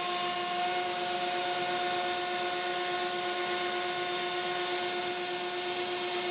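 A CNC router spindle whines as it surfaces an MDF board.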